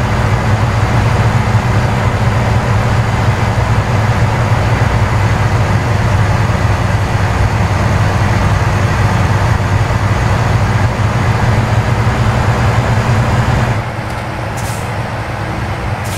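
A truck engine drones steadily with a deep hum.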